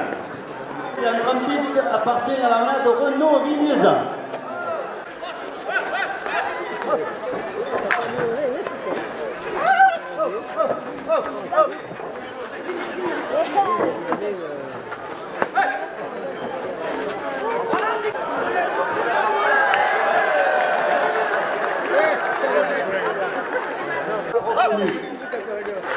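A crowd of spectators chatters and shouts across an open outdoor arena.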